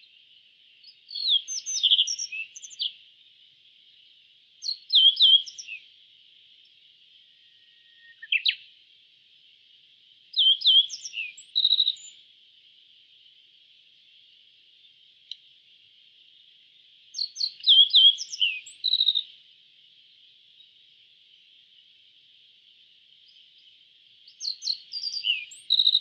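A small songbird sings short bursts of chirping trills, again and again.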